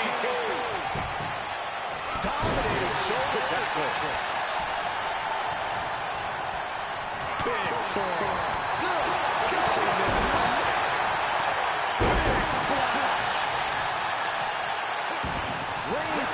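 Heavy thuds land as wrestlers slam onto a ring mat.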